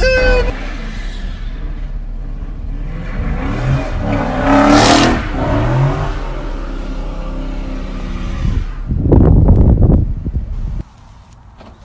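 A car engine roars and revs hard nearby.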